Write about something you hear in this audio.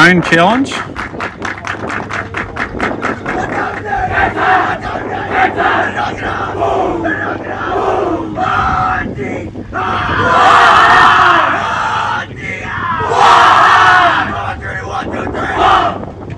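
A group of young boys cheers and shouts excitedly outdoors.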